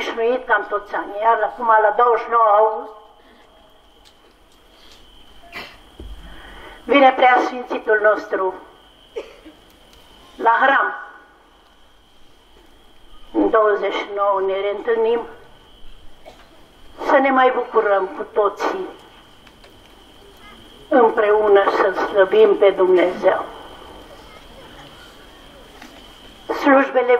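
An elderly man chants in bursts, close by, with pauses between phrases.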